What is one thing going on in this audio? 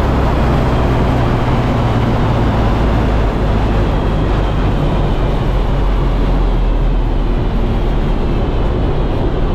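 A race car engine roars loudly from inside the cabin.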